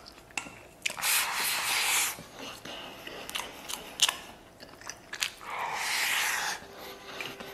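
A man slurps noodles loudly, close by.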